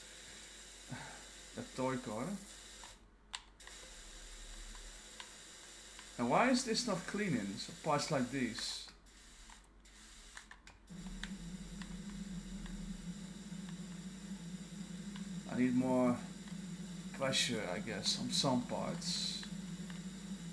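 A man talks casually and close to a microphone.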